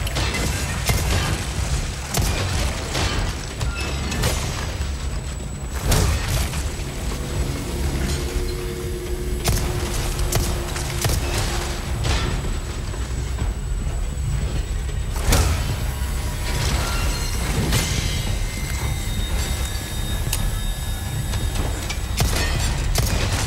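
Gunshots bang loudly again and again, echoing in a large hall.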